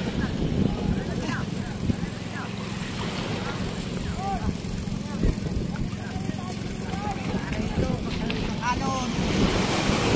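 Water sloshes and splashes around a man wading.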